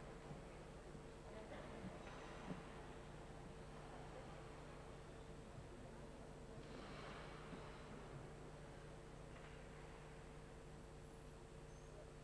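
A small crowd murmurs quietly in a large echoing hall.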